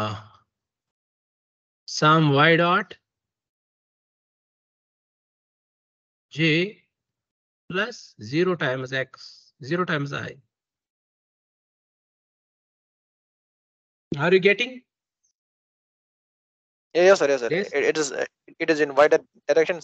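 A young man speaks calmly through an online call, explaining in short bursts with pauses.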